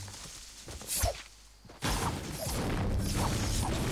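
A pickaxe strikes stone with sharp knocks.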